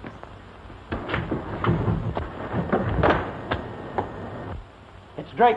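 Men scuffle and bang against metal bars.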